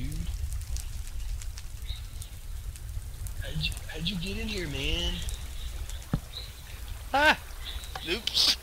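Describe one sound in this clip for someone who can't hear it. Water flows and trickles steadily.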